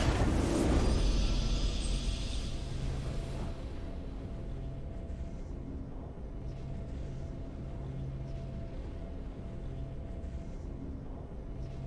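A triumphant fanfare plays and settles into soft music.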